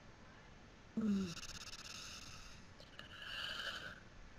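An older woman speaks slowly over an online call.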